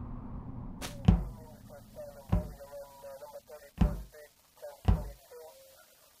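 Footsteps of a game character thud at intervals.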